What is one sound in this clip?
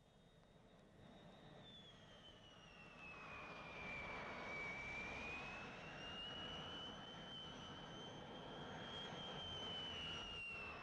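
A jet airliner roars loudly as it comes in low to land, its engines whining.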